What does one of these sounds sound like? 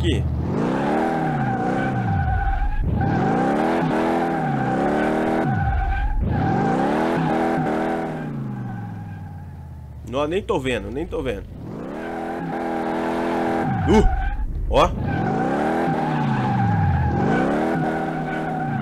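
A car engine revs hard, rising and falling again and again.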